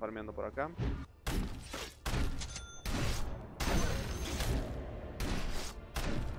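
Game spell effects crackle and burst.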